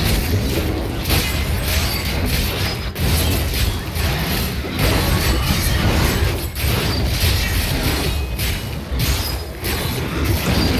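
Monsters growl and roar.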